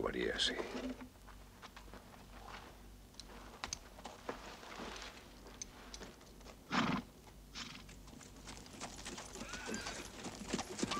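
Horses' hooves thud on sand.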